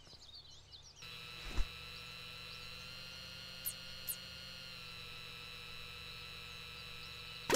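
A small quadcopter drone hums as it hovers.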